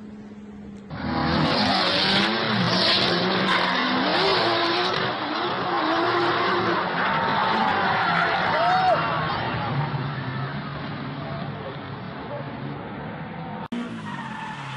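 Tyres squeal loudly.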